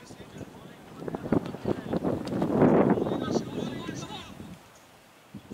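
Men on the field shout and call out loudly at a distance outdoors.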